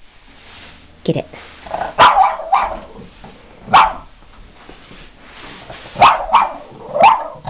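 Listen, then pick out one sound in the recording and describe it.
A small dog barks sharply in short bursts.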